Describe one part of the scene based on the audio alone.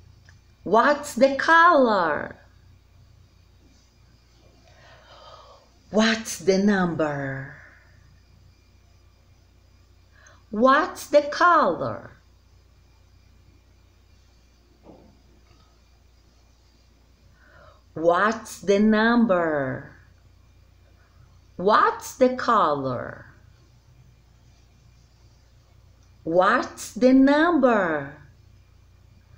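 A woman speaks close up in a lively, sing-song voice, in short bursts with pauses.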